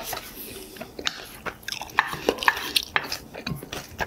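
A metal spoon scrapes against a metal pan.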